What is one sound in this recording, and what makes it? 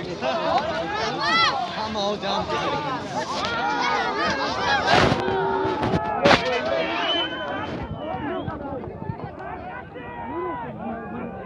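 A large crowd of men shouts and chatters loudly outdoors.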